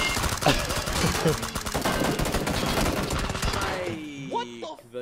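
Gunfire and loud game noise crackle rapidly.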